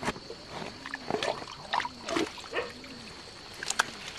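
A wooden stick digs and squelches in wet mud.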